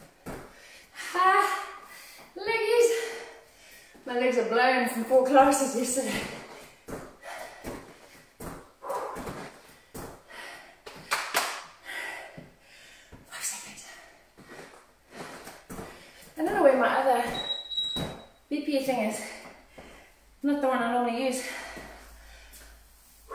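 A woman talks with animation close by, instructing an exercise.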